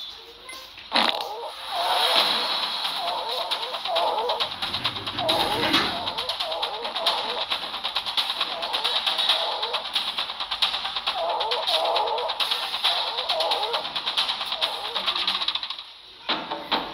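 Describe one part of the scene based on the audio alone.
Creatures roar and screech in a noisy battle.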